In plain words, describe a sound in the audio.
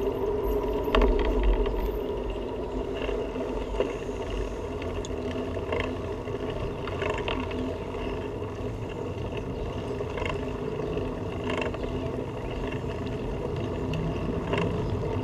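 Bicycle tyres bump over cracks in the pavement.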